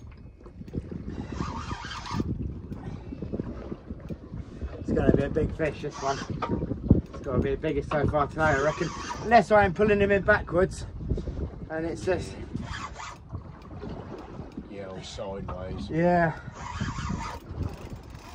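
A fishing reel's drag buzzes as line pulls out.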